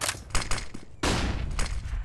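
A stun grenade bursts with a loud bang.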